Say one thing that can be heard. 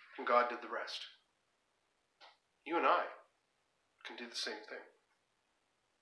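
A middle-aged man speaks calmly and close to the microphone, in short phrases with pauses.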